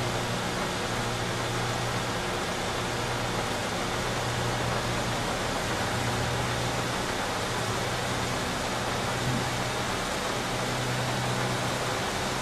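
Tyres hiss on a wet road.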